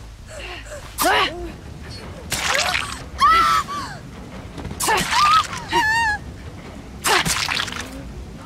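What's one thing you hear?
A blade strikes a body with sharp wet thuds.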